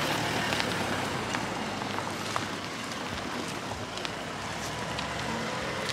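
Footsteps scuff on a gritty street close by.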